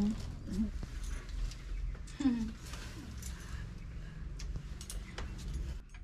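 A woman speaks calmly nearby.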